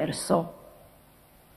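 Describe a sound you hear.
A man speaks briefly through a microphone in a large hall.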